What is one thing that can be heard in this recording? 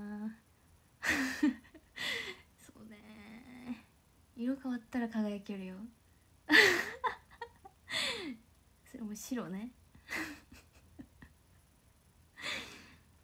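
A young woman giggles behind her hand.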